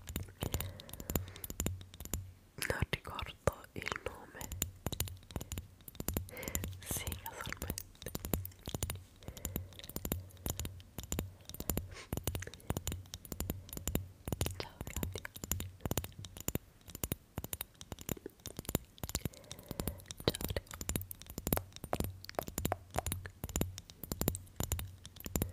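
Small plastic objects tap and click close to a microphone.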